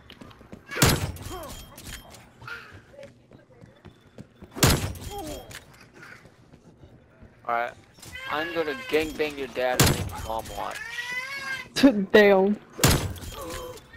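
A knife strikes with a sharp, heavy thud.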